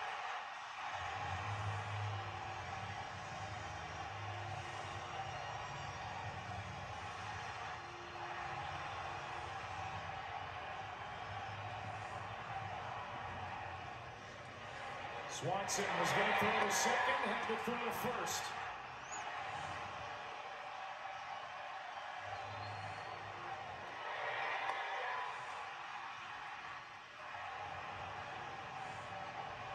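A stadium crowd cheers loudly through a television speaker.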